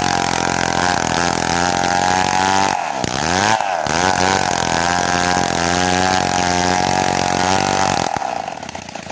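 A chainsaw rips lengthwise along a log under load.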